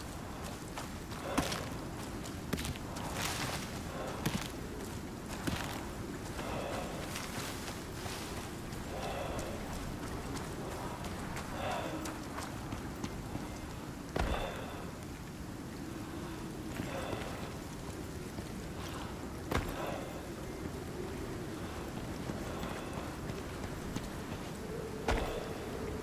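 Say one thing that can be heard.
Footsteps swish and thud through grass and over rock.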